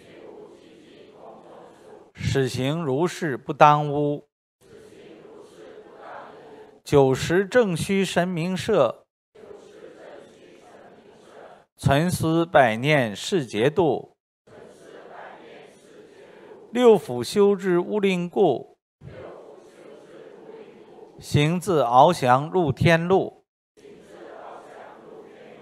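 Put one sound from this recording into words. A man reads aloud steadily into a microphone, in phrases with short pauses.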